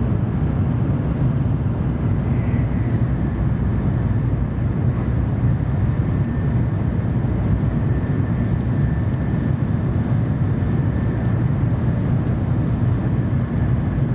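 A train rumbles steadily as it rides along the tracks.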